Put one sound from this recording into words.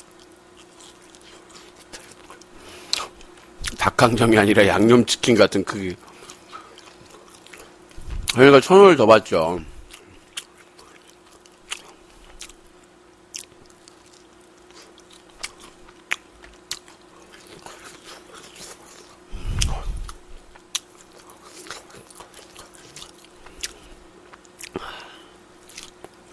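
A young man chews food noisily close to a microphone.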